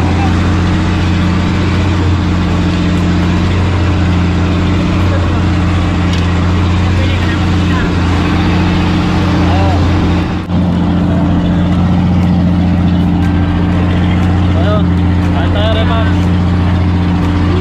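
A boat engine drones steadily.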